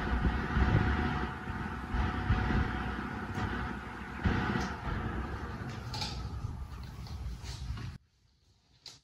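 An electric fan whirs steadily as its blades spin.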